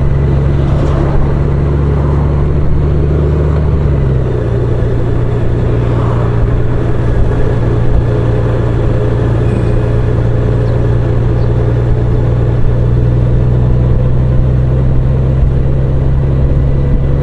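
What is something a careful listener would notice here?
A flat-six touring motorcycle engine hums while cruising.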